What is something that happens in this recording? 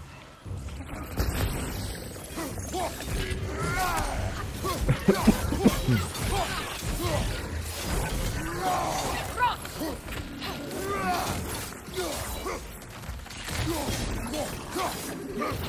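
Blades whoosh and clash in a fierce fight.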